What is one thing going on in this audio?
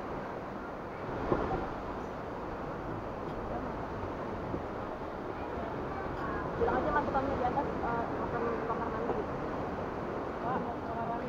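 Wind rustles through palm fronds outdoors.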